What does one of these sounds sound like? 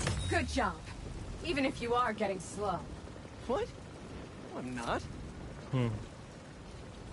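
A young man and a woman talk calmly.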